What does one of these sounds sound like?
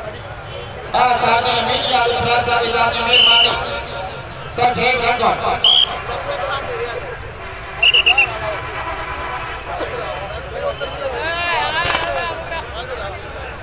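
Men in a crowd shout and cheer loudly.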